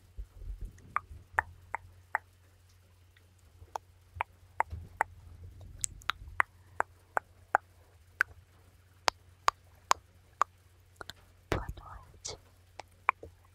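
Hands rustle and rub softly over a microphone.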